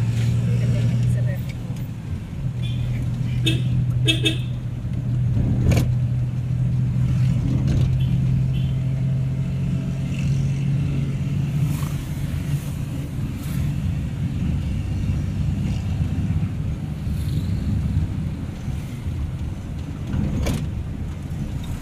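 Motorcycles pass by nearby.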